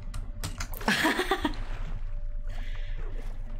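Water splashes as a character climbs out of it in a video game.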